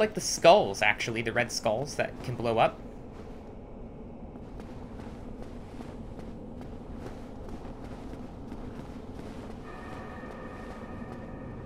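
Armoured footsteps clatter quickly on stone.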